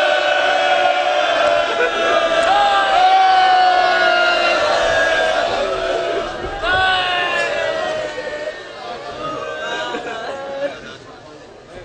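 A man chants loudly through a loudspeaker in an echoing space.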